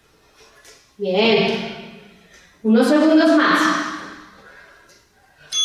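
A woman speaks with energy, close to a microphone.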